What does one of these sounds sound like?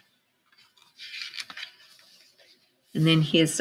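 A book's pages rustle as they turn.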